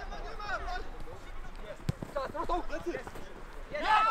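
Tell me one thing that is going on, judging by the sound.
A football is kicked on a grass pitch.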